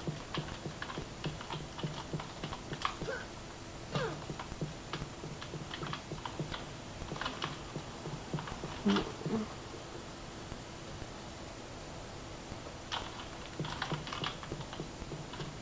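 Game sound effects play from small speakers.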